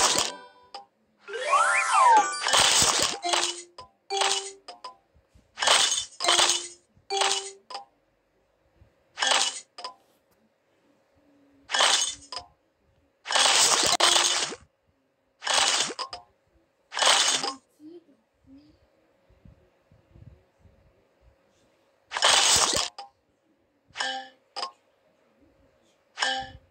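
Game sound effects chime and pop in short bursts as candies match and burst.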